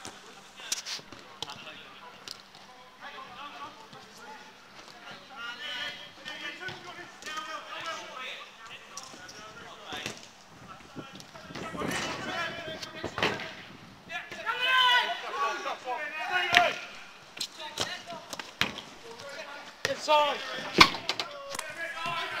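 Young men shout to each other outdoors during a football game.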